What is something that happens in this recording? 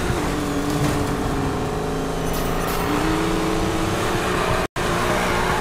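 A racing car engine roars at high revs, its pitch shifting with gear changes.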